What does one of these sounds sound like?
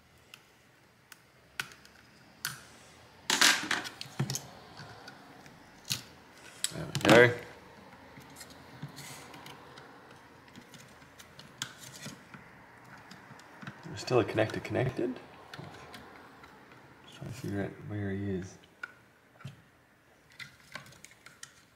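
Plastic parts click and rattle as hands take apart a small device.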